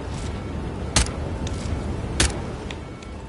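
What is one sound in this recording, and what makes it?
Pistol shots crack sharply, twice.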